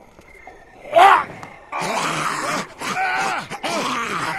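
A zombie growls and snarls loudly.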